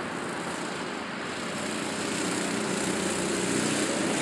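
Go-kart engines hum faintly far off and grow louder as they approach.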